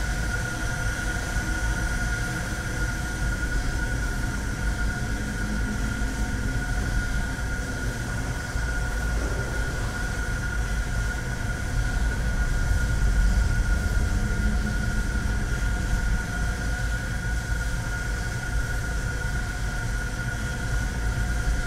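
A low steady ambient hum drones throughout.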